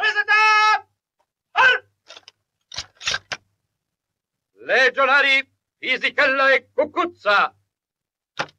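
A man shouts loud commands.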